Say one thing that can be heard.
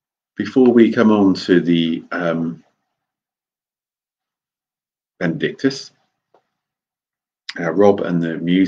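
A middle-aged man speaks calmly and close up through a microphone, with pauses.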